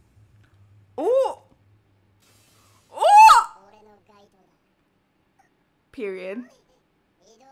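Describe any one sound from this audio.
A young woman exclaims loudly and excitedly into a close microphone.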